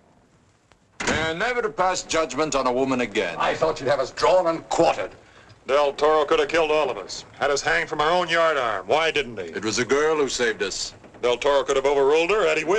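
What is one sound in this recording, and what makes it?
A man speaks forcefully and loudly nearby.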